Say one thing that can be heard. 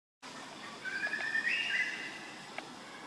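A baby monkey squeaks in short high calls.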